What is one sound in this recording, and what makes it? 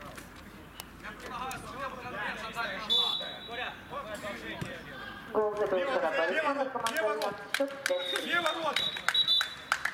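Men shout and call out across an open pitch.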